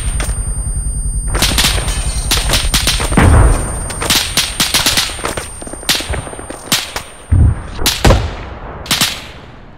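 Shells explode on a ship in loud, booming blasts, one after another.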